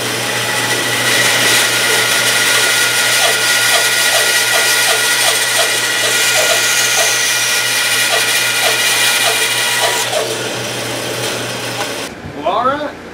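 A band saw runs with a steady whine and hum.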